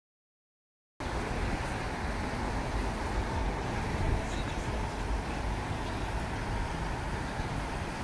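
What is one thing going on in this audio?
Car engines hum as traffic passes along a busy street outdoors.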